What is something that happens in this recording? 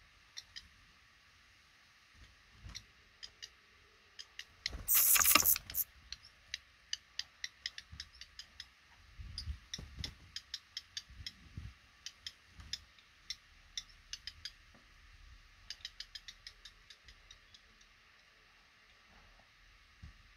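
Baby birds give short, high cheeps now and then.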